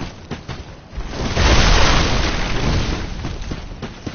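A loud crashing burst erupts and slowly fades.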